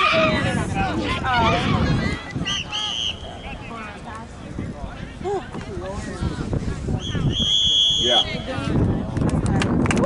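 Young women call out to each other across an open field.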